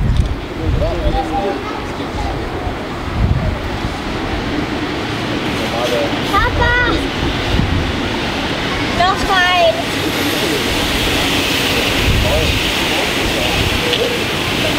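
A steam locomotive chuffs as it slowly approaches.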